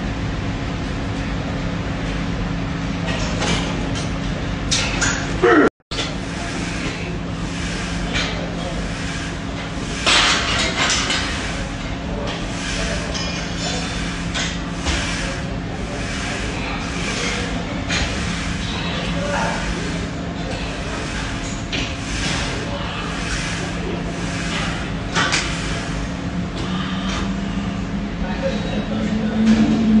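A cable machine's weight stack clinks as it rises and falls.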